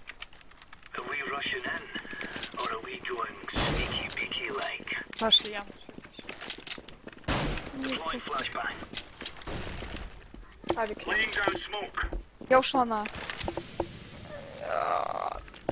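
A young woman talks calmly into a nearby microphone.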